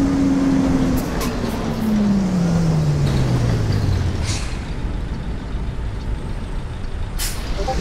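A bus engine rumbles, its pitch falling as the bus slows.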